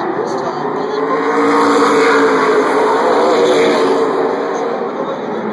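Race cars roar loudly past up close, the engine pitch rising and then falling.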